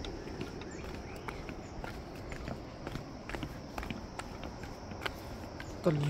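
Footsteps scuff and tap on stone steps.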